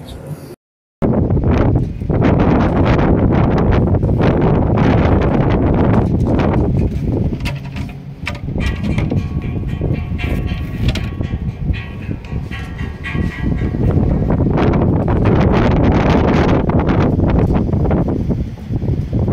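Strong wind blows loudly outdoors.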